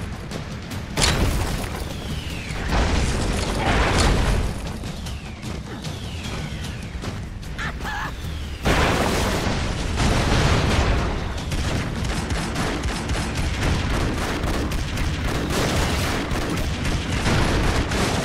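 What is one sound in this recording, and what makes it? Game explosions boom and crackle.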